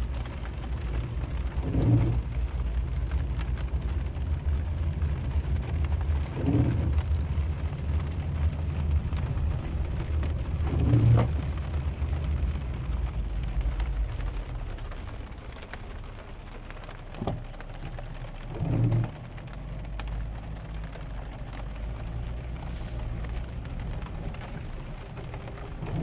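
Raindrops patter on a windshield.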